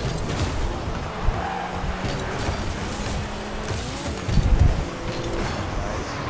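A ball thumps loudly as a car hits it.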